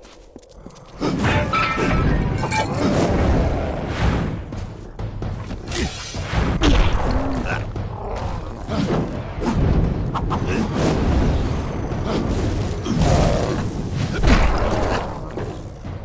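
Fiery blasts roar and crackle.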